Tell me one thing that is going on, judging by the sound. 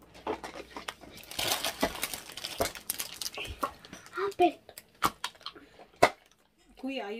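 Aluminium foil crinkles and rustles.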